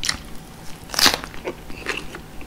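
A crisp green pepper crunches with a loud bite.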